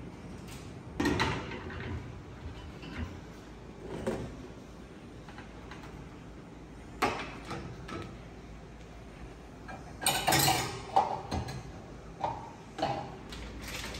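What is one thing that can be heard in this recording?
Dishes and containers clink and clatter on wire racks.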